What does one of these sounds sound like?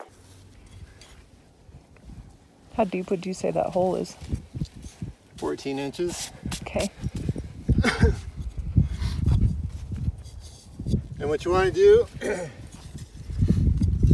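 Hands scrape and scoop loose sand.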